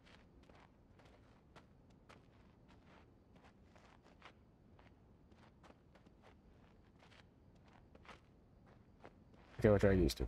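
Footsteps tread softly across a floor.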